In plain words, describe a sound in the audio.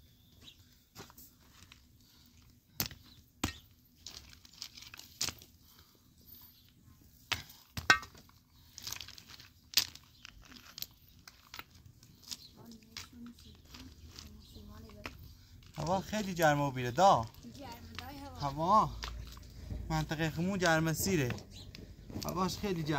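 Concrete blocks knock and scrape against gravel and stone.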